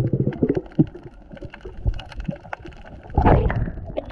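Water bubbles and gurgles underwater, close by.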